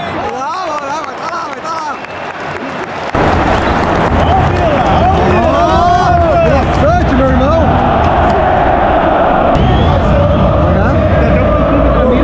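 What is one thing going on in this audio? A large crowd sings and chants loudly in an open stadium.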